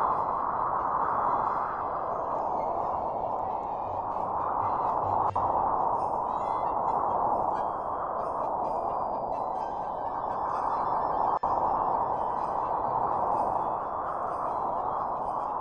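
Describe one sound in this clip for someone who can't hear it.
A snowboard hisses steadily as it slides over snow.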